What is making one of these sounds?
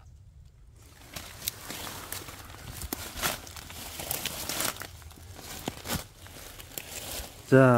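Dry leaves rustle and crackle underfoot.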